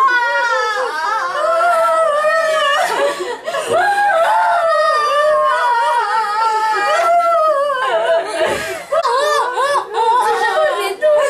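Several women wail and sob loudly close by.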